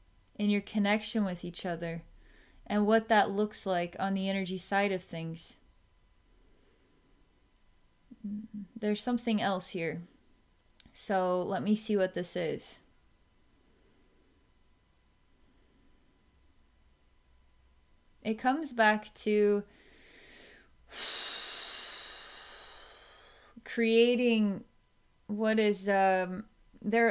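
A woman speaks calmly and softly close to a microphone, with long pauses.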